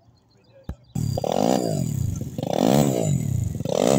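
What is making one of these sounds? A motorcycle engine starts up and revs loudly, rising and falling in pitch.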